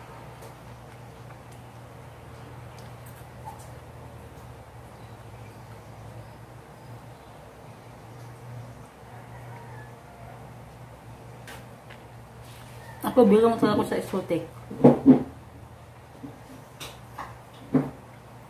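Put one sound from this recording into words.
A woman chews and smacks her lips while eating.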